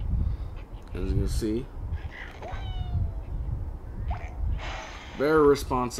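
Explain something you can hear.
Cartoon birds squawk through a small tablet speaker.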